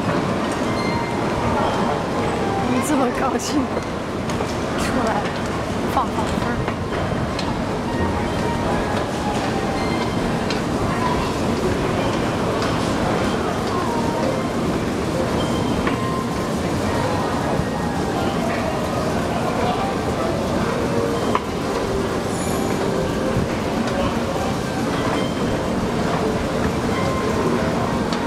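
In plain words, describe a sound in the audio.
A moving walkway rumbles steadily in a large echoing hall.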